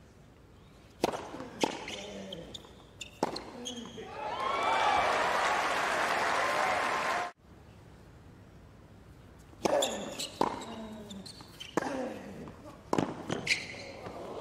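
Tennis balls are struck sharply back and forth with rackets.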